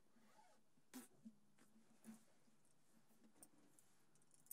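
An acoustic guitar is strummed softly.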